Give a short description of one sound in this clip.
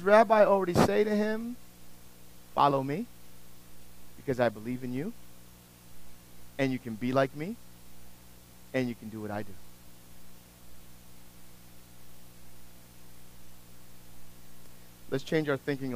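A middle-aged man speaks with animation in short bursts.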